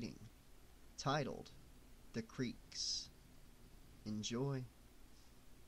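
A man speaks in a low, theatrical voice.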